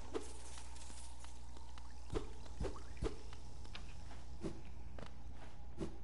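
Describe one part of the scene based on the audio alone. Coins clink as they are collected.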